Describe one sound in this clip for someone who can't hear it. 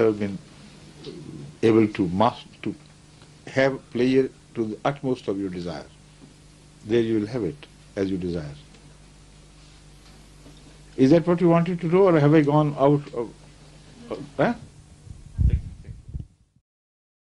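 An elderly man speaks calmly and slowly into a microphone, with pauses.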